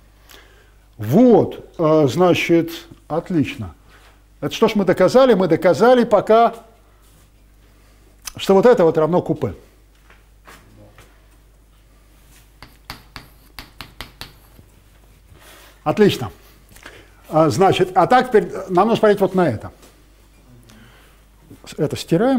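An elderly man lectures calmly in a room with some echo.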